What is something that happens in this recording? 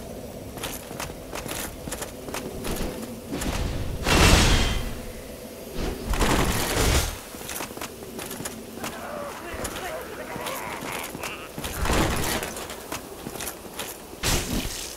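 Armoured footsteps clatter on stone.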